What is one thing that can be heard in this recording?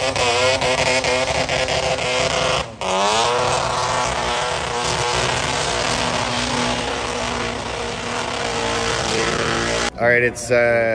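Tyres screech loudly in a smoky burnout.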